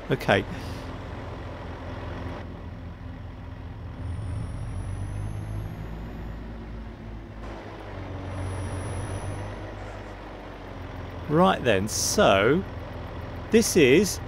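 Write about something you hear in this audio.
A heavy truck engine hums steadily at low speed.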